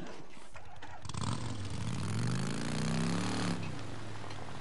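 A motorcycle engine revs and fades.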